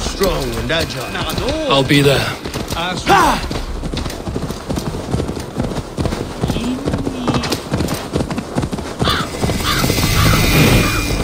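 Horse hooves thud steadily on a dirt path.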